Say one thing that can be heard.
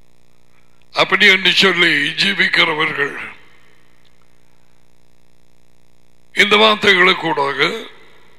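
A middle-aged man speaks calmly and clearly into a close headset microphone.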